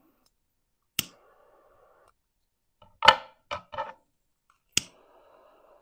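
A torch lighter clicks as it ignites.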